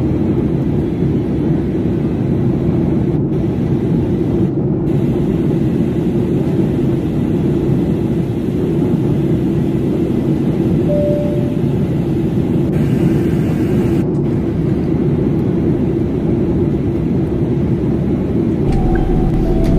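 Jet engines drone steadily through an airliner cabin.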